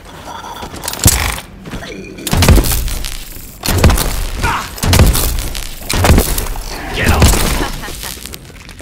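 Gunshots ring out in loud, sharp bursts.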